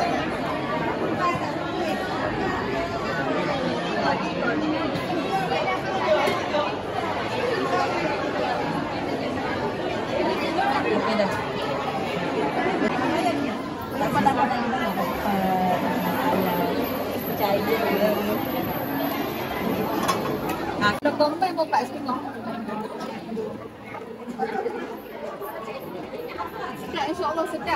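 A crowd of people chatters all around in a busy indoor hall.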